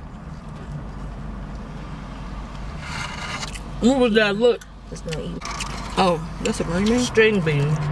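Plastic forks scrape and tap on food containers.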